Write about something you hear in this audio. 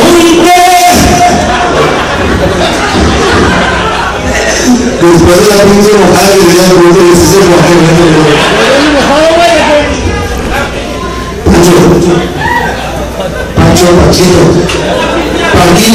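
A man sings loudly into a microphone, heard through loudspeakers.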